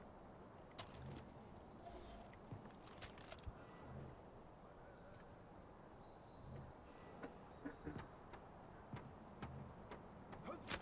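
Footsteps thud on wooden boards at a steady walking pace.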